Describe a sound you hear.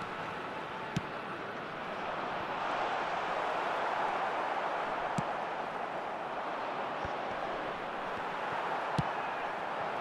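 A ball is kicked with sharp thuds.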